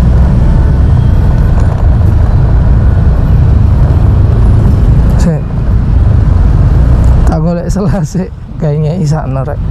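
A motorcycle engine hums as the bike rolls along.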